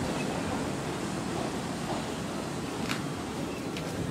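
A train rolls into a station with a low rumble.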